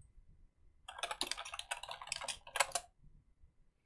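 Keys click on a keyboard in quick bursts.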